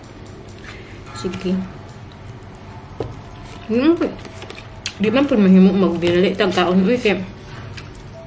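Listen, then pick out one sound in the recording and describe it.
A fork scrapes and clinks against a food container.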